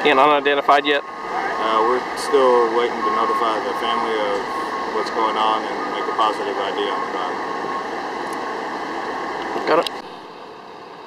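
A man speaks calmly, close to a microphone.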